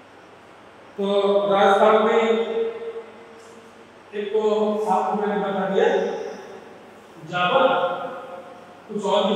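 A man speaks calmly and clearly in a small room with a slight echo.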